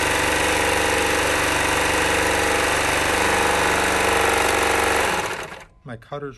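A serger machine whirs loudly as it stitches fabric.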